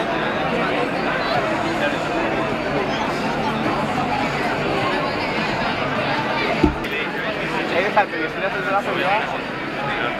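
Men and women talk nearby in the crowd.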